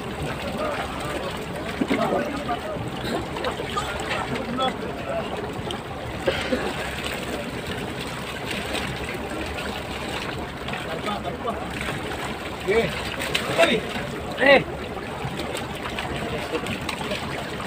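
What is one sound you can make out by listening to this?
Water splashes and churns against a boat's hull.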